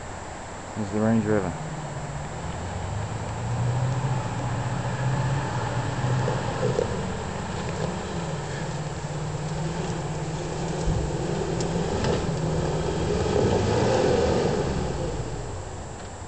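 An off-road vehicle's engine rumbles and revs nearby.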